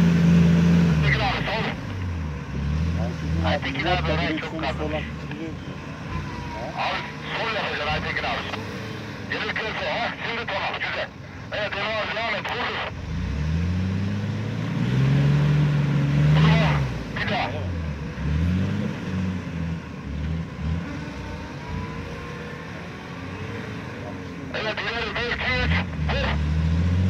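A man shouts outdoors.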